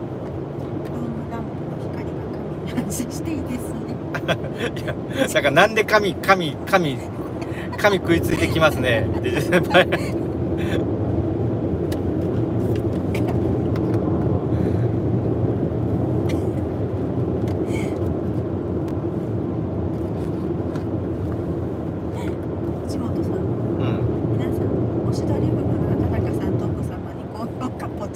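A car engine and road noise hum steadily inside a moving car.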